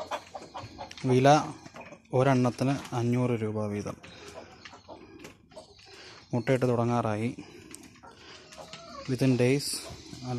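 A rooster crows loudly several times.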